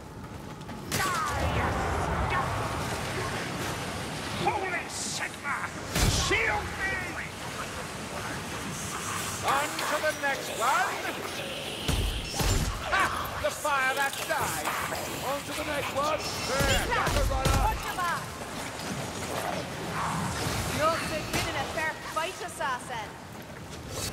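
A sword slashes and strikes flesh with wet thuds.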